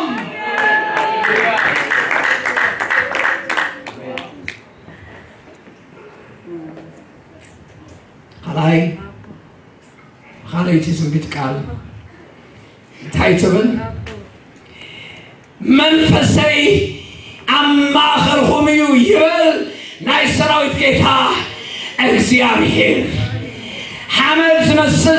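A man preaches through a microphone over loudspeakers, pausing often and growing more animated, in a large echoing hall.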